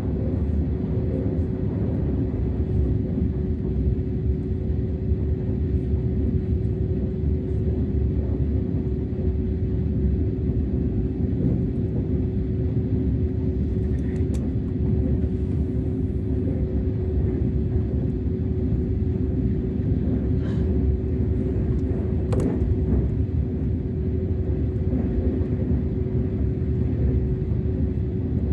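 A steady hum drones inside a train carriage.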